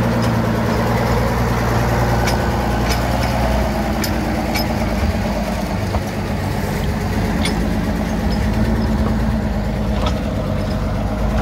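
Train wheels clatter and click on the rails.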